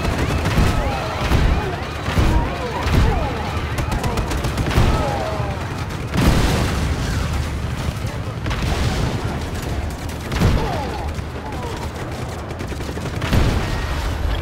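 A tank cannon fires with heavy thuds.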